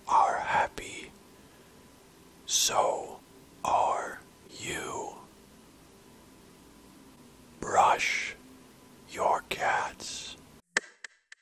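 A cat meows loudly several times.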